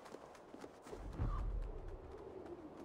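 A heavy body lands with a dull thud.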